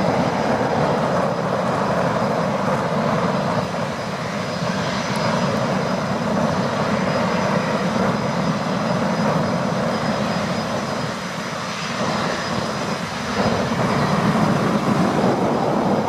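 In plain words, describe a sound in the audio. A jet airliner's engines roar steadily as it approaches overhead.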